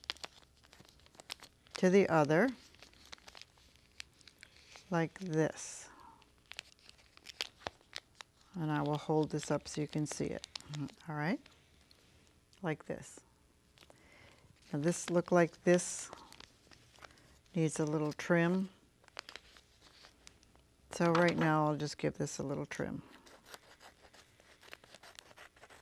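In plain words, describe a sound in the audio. Paper crinkles and rustles in a woman's hands.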